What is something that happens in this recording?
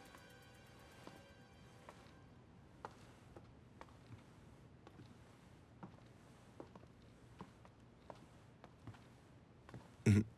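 Footsteps tap softly across a wooden floor.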